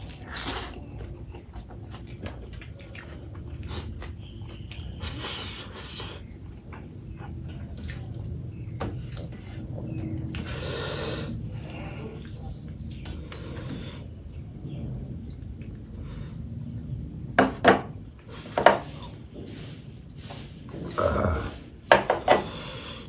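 A man chews and smacks his lips close to the microphone.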